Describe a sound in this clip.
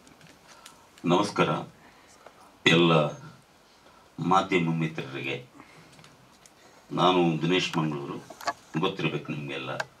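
An older man speaks steadily into a microphone.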